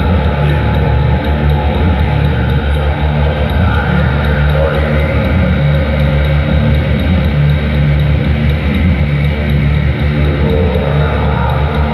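A man sings and shouts loudly into a microphone.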